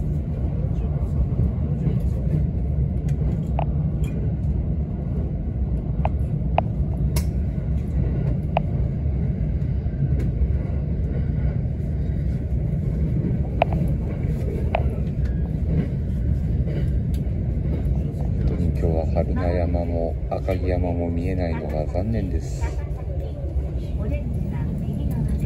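A train rumbles steadily along the rails, heard from inside a carriage.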